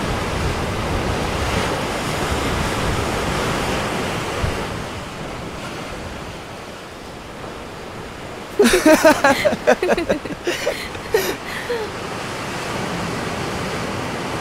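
Waves crash and wash onto a beach.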